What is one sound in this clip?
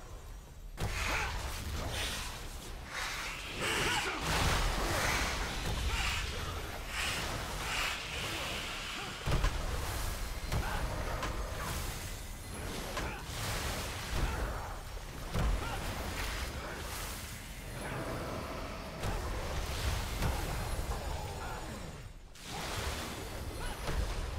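Magic blasts and weapon strikes crash again and again in a noisy fight.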